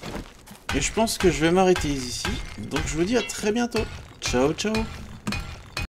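A hammer knocks on wood.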